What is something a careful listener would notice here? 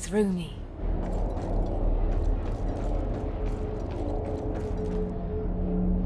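Magic spells crackle and whoosh with sharp snaps.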